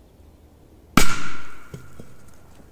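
A firecracker bangs sharply outdoors.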